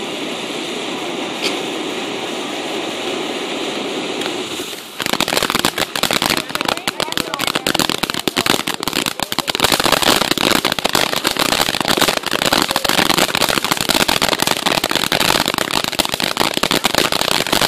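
A firework fountain hisses and roars steadily outdoors.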